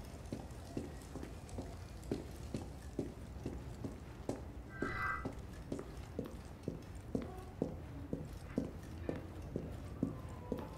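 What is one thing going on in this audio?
Footsteps tread steadily on stone stairs and floors.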